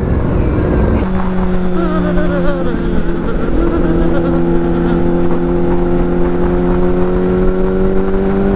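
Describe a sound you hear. An inline-four sport bike cruises at a steady speed.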